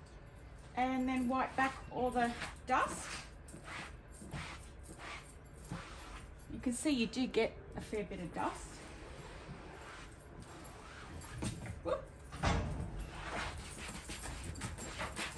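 A cloth rubs softly against fabric.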